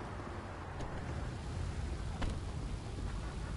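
A car engine rumbles low and steady.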